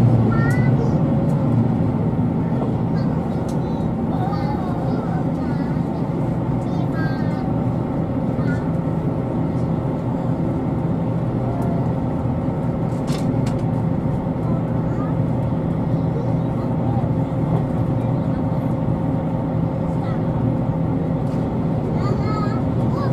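A train rumbles steadily along the tracks from inside a carriage.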